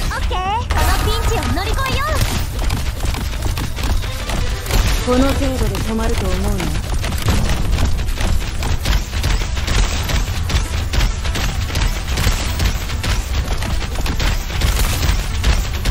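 Game battle effects clash and zap with rapid hits.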